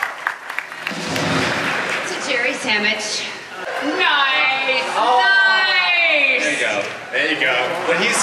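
A woman sings through a loudspeaker.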